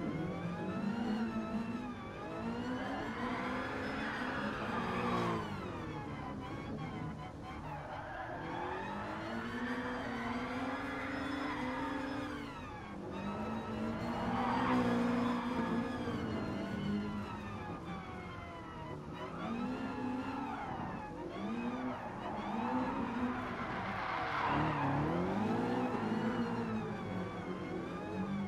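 A racing car engine revs high, rising and dropping with each gear change.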